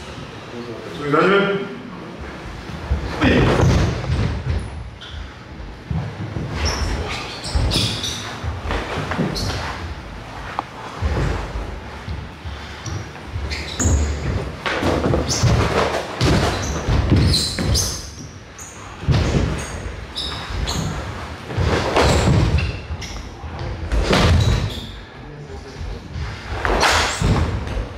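Bare feet thud and shuffle on a wooden floor.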